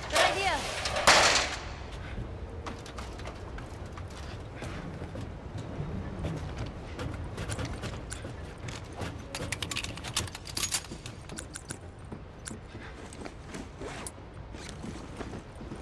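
Footsteps clank on metal walkways and stairs.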